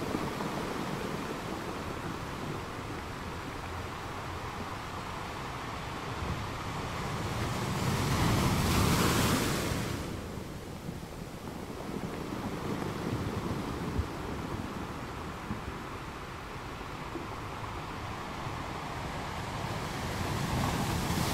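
Ocean waves roll in and crash steadily against rocks.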